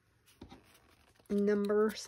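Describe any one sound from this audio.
An ink blending tool dabs softly on paper.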